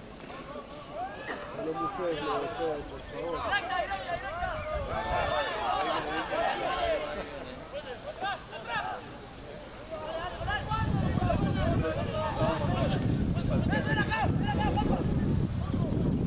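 Young men shout and call to each other on an open field.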